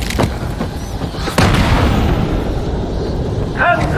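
Heavy punches land with thuds.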